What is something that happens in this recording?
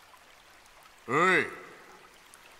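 A young man says a short word calmly.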